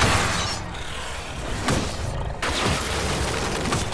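Ice shatters with a sharp crash.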